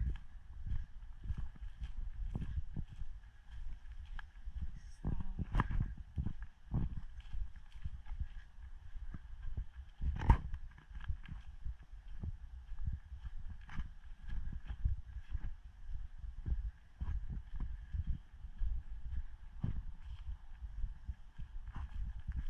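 Footsteps crunch steadily over dry leaves and twigs on a forest floor.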